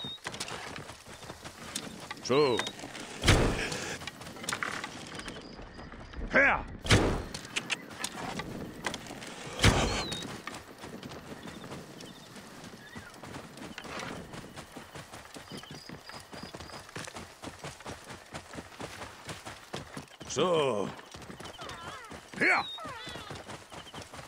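A horse's hooves thud steadily on the ground.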